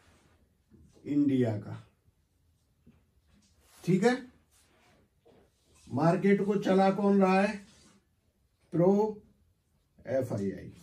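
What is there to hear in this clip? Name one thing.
A middle-aged man speaks calmly and close by, in short phrases with pauses.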